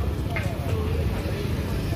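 A motorcycle engine idles nearby with a low rumble.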